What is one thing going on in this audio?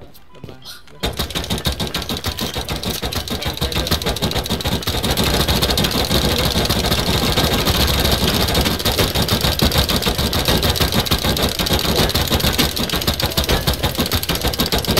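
Rapid gunfire blasts steadily into a wall.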